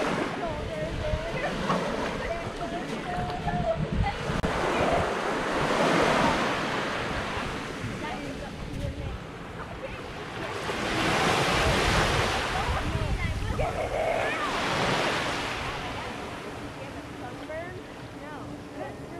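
Small waves wash gently onto a sandy shore in slow surges.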